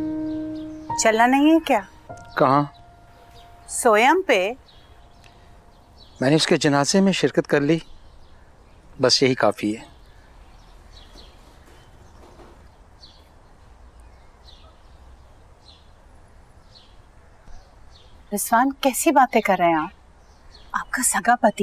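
A middle-aged woman speaks firmly, close by.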